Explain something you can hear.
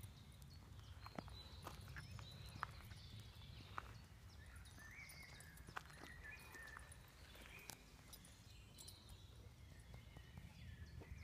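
A small bird's feet patter and scratch on gravel.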